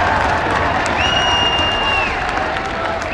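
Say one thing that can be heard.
A referee's whistle blows a long blast.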